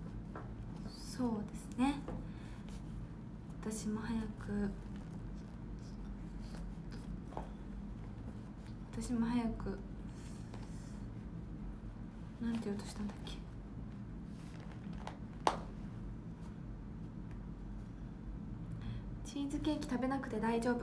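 A young woman speaks softly and casually, close to a microphone, in short bursts.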